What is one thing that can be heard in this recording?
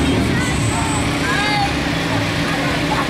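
Children cheer and shout outdoors.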